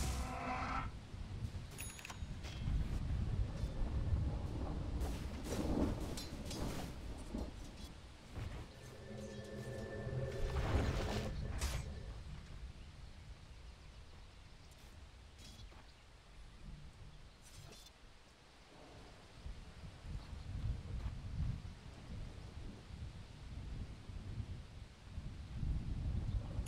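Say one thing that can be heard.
Spell effects crackle and whoosh in a video game.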